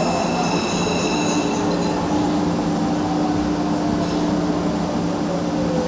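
A train rumbles and hums steadily along the track.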